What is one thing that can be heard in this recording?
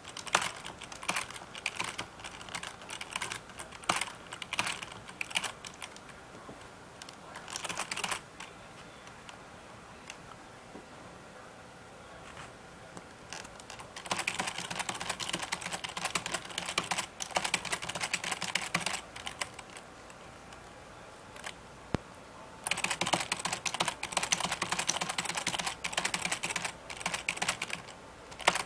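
Video game fighting sounds play in bursts through small laptop speakers.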